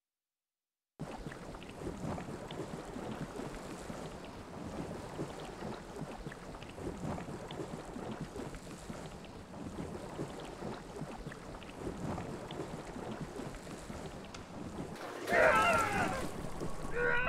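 Rough sea water churns and splashes steadily.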